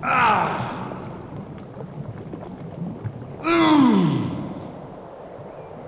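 A shimmering magical chime sweeps downward in pitch, twice.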